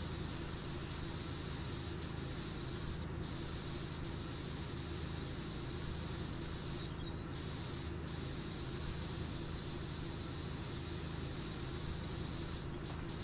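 A pressure washer sprays water in a steady hiss against wood.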